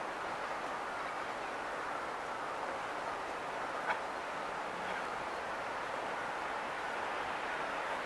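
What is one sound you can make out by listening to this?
Traffic hums steadily on a city street below.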